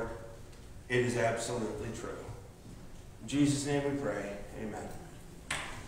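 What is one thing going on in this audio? An elderly man speaks calmly into a microphone in an echoing room.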